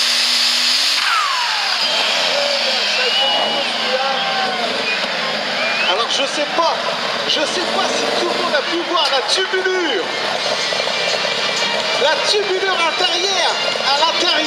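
A large crowd cheers, shouts and whistles.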